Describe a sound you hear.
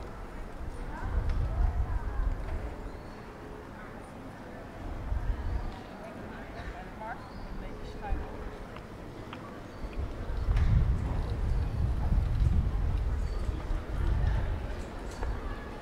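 Wind gusts outdoors and rumbles against the microphone.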